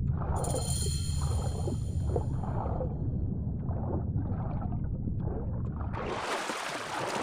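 Water rumbles and gurgles, muffled as if heard underwater.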